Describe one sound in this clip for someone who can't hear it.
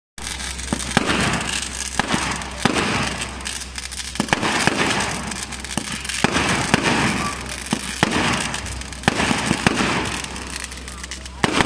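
Fireworks pop and crackle in sharp bursts overhead.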